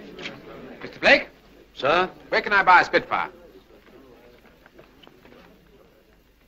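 A middle-aged man speaks cheerfully.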